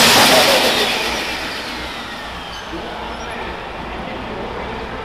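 A pro stock pulling tractor's turbocharged diesel engine winds down from full power.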